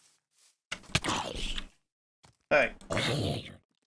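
A blade strikes a creature with a thud.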